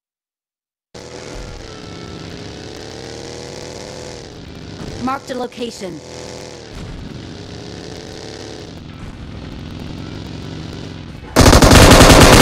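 A buggy engine drones and revs.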